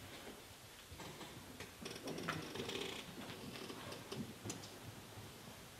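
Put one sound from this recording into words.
A man's footsteps thud on a hollow wooden floor.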